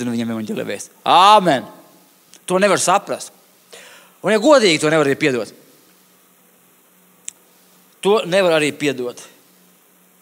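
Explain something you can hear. A middle-aged man speaks with animation through a microphone, in bursts with pauses.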